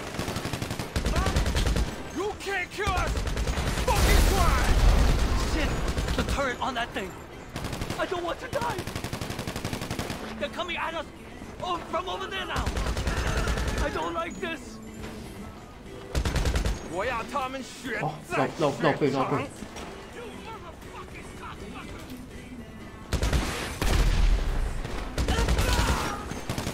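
Rapid gunfire bursts out nearby.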